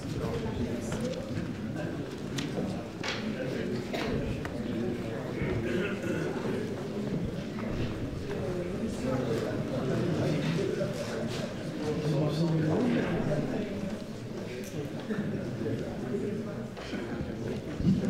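An elderly man talks into a microphone in a large echoing hall.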